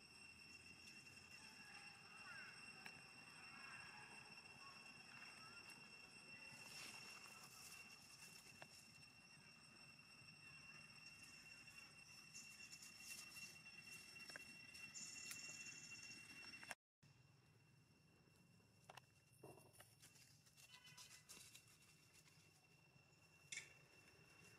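Insects drone steadily outdoors.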